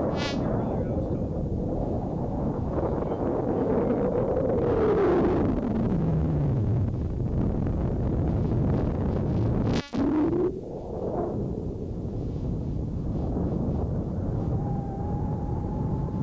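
Wind rushes and buffets loudly outdoors.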